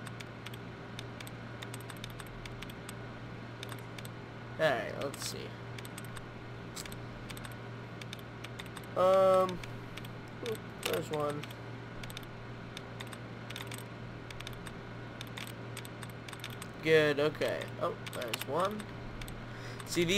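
A computer terminal hums steadily.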